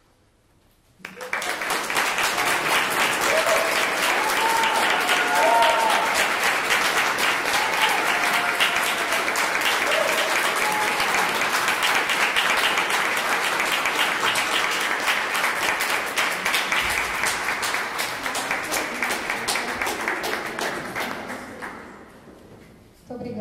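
An audience applauds loudly and steadily, then the clapping fades.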